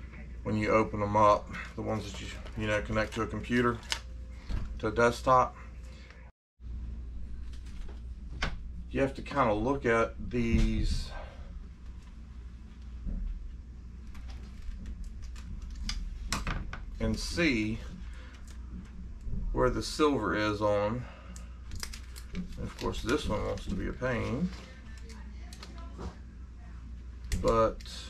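Thin plastic sheets crinkle and rustle in a man's hands.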